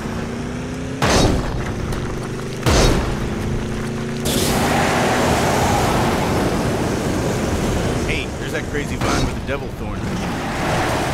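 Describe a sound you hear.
Exhaust flames burst with loud whooshes.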